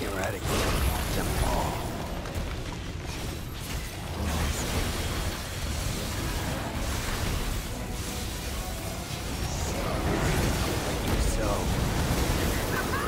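A huge creature stomps heavily with deep rumbles.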